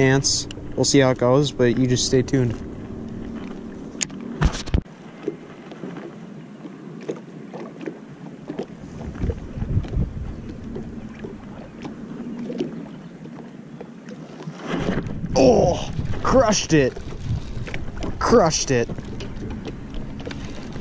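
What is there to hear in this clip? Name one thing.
Water laps gently against a small boat's hull.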